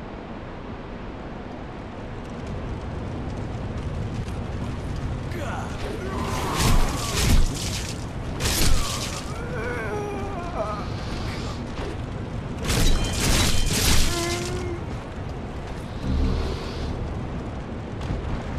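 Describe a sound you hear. Armoured footsteps clatter on stone.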